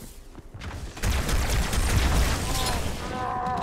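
A loud energy blast roars and crackles.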